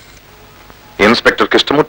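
A middle-aged man speaks forcefully into a telephone close by.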